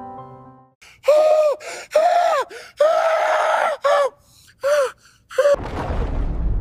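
A man roars and shouts with strain, close by.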